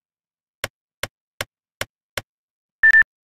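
Keypad buttons beep quickly one after another.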